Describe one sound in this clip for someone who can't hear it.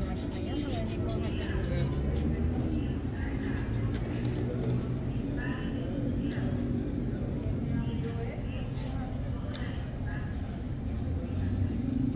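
A man's footsteps pass by on pavement.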